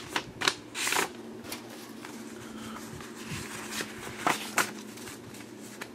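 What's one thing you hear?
Paper cards rustle and flick as they are shuffled by hand.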